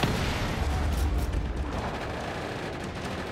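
A pistol fires a few sharp shots.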